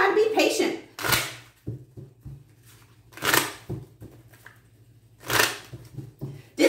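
Playing cards are shuffled with quick, papery riffles.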